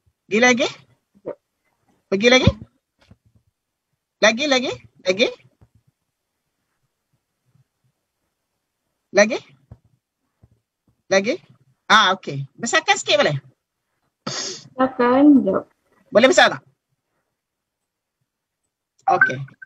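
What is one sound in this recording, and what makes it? A middle-aged woman speaks calmly over an online call, in short bursts with pauses.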